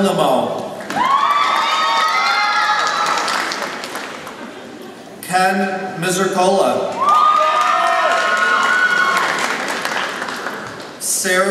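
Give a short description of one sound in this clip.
A crowd cheers and whoops loudly.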